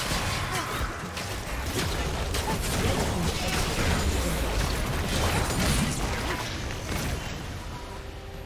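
Magical blasts and clashing hits crackle in a busy fight.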